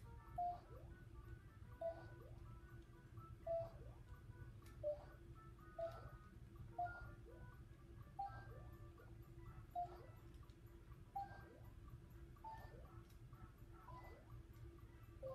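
Cheerful electronic game music plays steadily.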